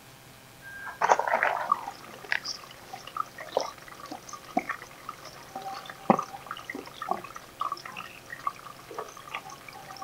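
Leafy plants rustle as they are pulled and pushed into pots.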